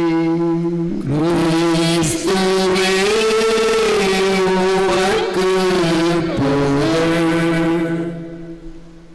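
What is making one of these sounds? An elderly man chants in a sustained, singing voice through a microphone, with echo.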